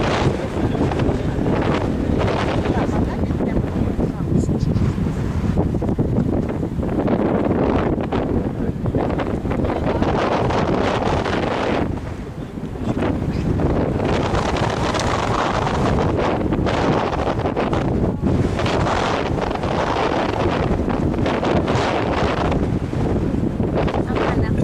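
Strong wind gusts and rumbles outdoors.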